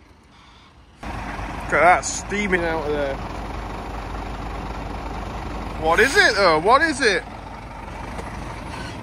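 A truck engine runs steadily nearby.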